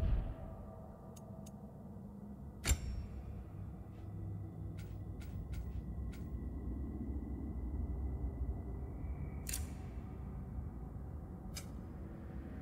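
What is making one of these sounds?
Short menu clicks and chimes sound now and then.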